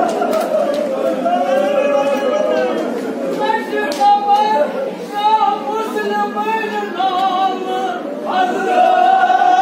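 A large crowd of men chants together loudly in an echoing hall.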